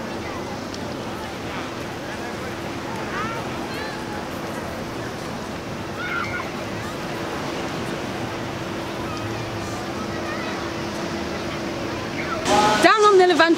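A crowd of people murmurs and chatters faintly in the distance outdoors.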